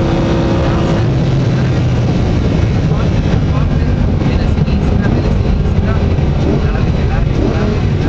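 A sports car engine drops in pitch and growls as the car slows.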